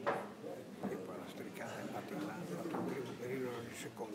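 Billiard balls click together on the table.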